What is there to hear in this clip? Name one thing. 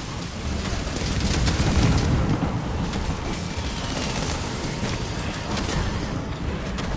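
Fiery explosions burst and roar.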